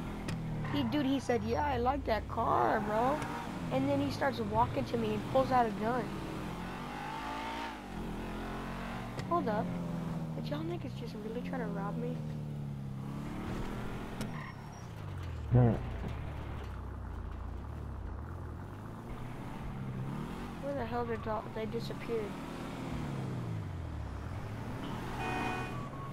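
A car engine revs up and down loudly as a car speeds along a street.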